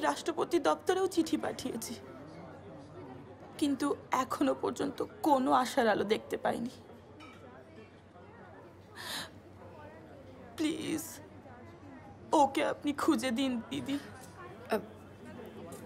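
A young woman speaks earnestly nearby.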